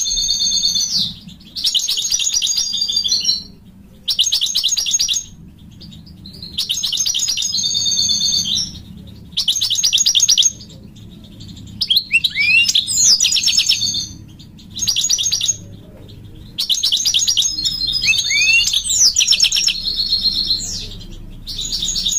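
A goldfinch sings close by in rapid bursts of twittering trills and rattles.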